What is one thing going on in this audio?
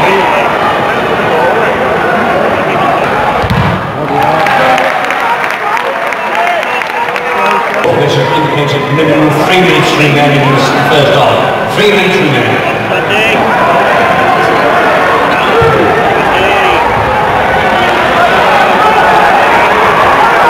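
Nearby men in the crowd talk and shout.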